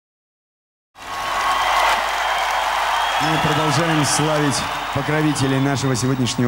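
A large crowd cheers and applauds loudly in a big hall.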